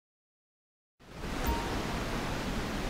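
A waterfall rushes and splashes steadily.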